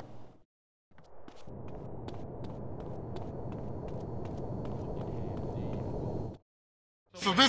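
Footsteps run along a pavement outdoors.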